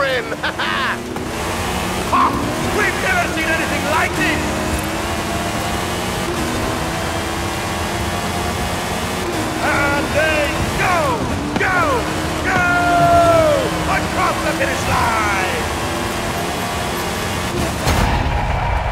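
A buggy engine roars steadily at high revs.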